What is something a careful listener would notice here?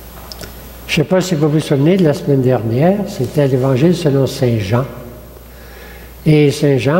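An elderly man speaks calmly through a microphone in a large echoing room.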